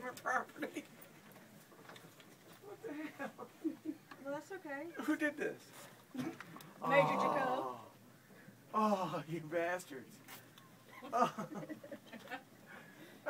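A middle-aged man talks and laughs nearby with animation.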